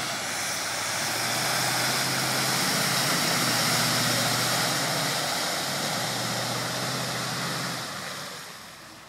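Muddy water splashes and sprays loudly.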